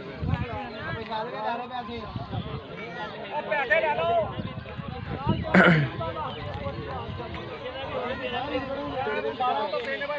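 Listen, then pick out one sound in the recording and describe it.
A crowd of men talks and calls out outdoors at once.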